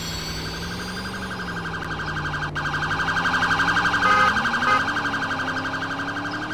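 A car engine hums steadily, then revs higher.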